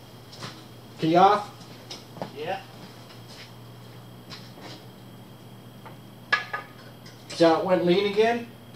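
A man speaks nearby in short bursts.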